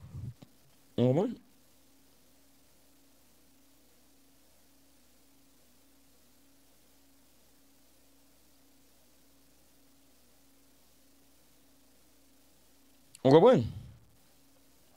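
A man utters brief, short sounds into a close microphone, with long silences between.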